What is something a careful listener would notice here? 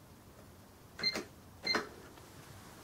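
A cash register key beeps as it is pressed.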